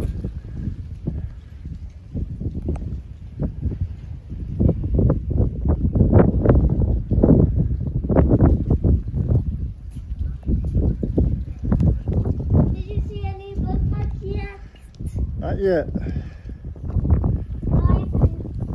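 Wind gusts and rumbles across the microphone outdoors.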